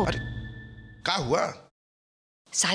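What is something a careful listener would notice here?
A man speaks with emotion close by.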